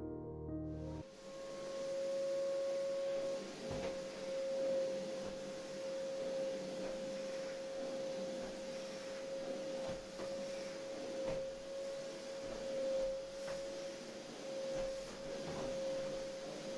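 A vacuum cleaner hums steadily with a high whine.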